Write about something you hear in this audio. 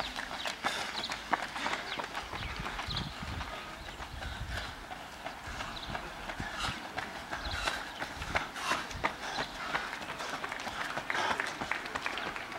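Running footsteps slap on asphalt and pass close by.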